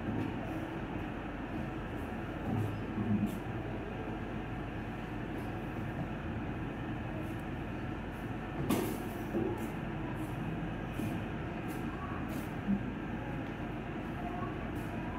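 Fingers rustle softly through hair close by.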